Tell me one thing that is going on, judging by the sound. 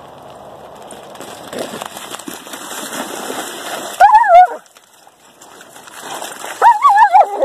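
Dogs splash and run through shallow water.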